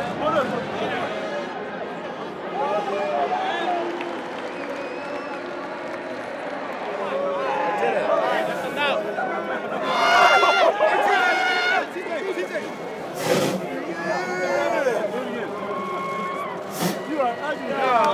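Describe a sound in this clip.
Young men shout and whoop with excitement close by.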